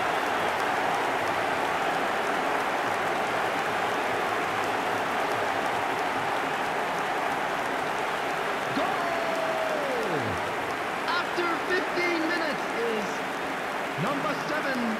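A large stadium crowd cheers and roars loudly.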